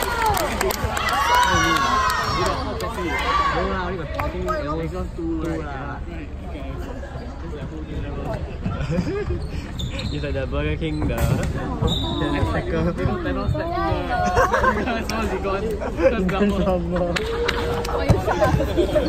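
Young girls talk and cheer close by in a large echoing hall.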